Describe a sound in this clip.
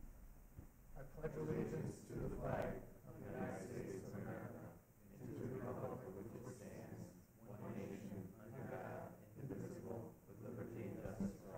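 A group of men and women recite together in unison in a large echoing hall.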